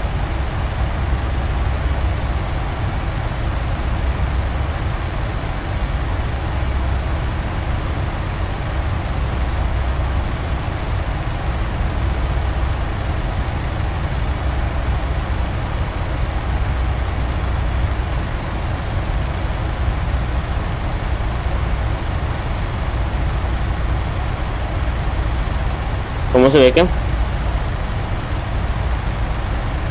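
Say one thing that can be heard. Jet engines hum and rumble steadily.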